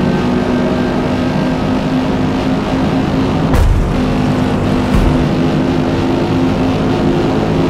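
A racing car engine drones at high revs.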